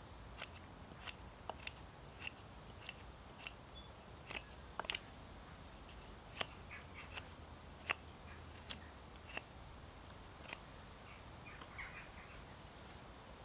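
A knife shaves wood from a stick in short, sharp strokes.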